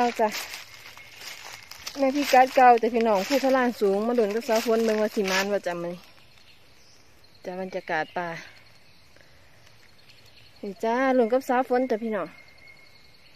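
A young woman talks close by in a lively way.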